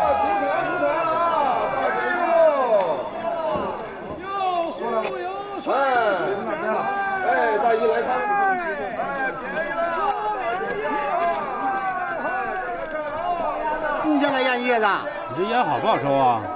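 A crowd of men and women chatters busily outdoors.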